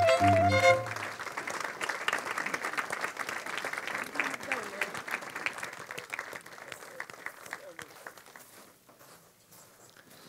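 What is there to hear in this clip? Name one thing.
An audience claps and applauds, slowly dying away.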